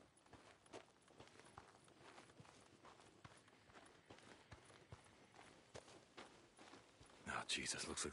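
Footsteps crunch quickly on dirt and gravel.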